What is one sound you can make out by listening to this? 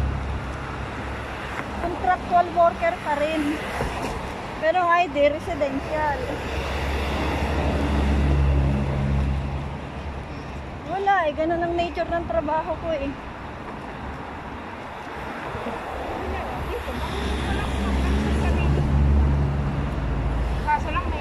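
Traffic rumbles past on a road nearby.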